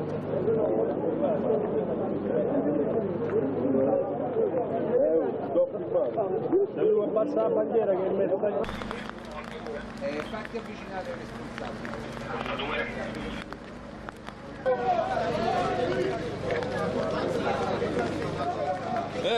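Footsteps splash on a wet street.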